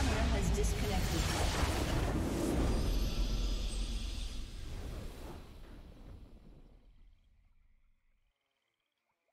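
A crystal structure shatters with a loud, booming crash that fades out.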